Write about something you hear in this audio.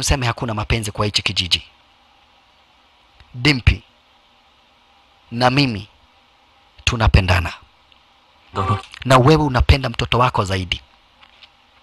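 A young man answers quietly, close by.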